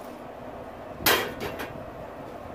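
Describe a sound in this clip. A metal grill lid clanks open.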